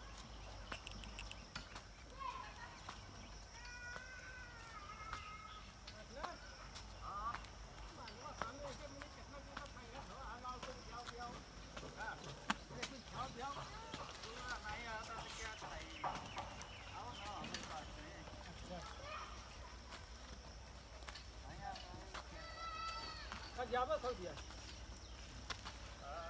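Elephants plod along a paved road.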